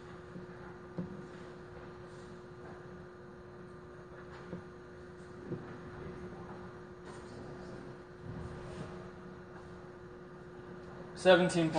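Metal parts click and clink as hands work on a machine.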